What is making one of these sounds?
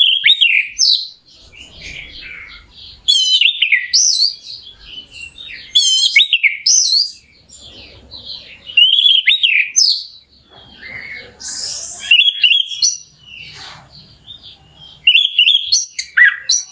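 A songbird sings loud, varied whistling phrases with rapid trills, close by.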